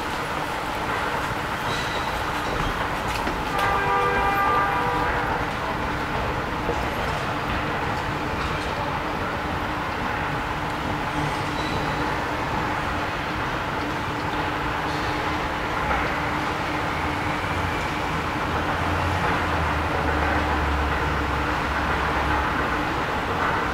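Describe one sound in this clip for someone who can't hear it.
An escalator hums and rumbles steadily in a large echoing hall.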